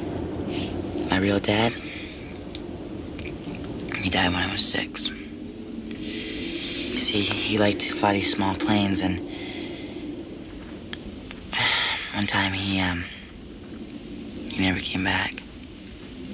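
A teenage boy speaks softly and earnestly, close by.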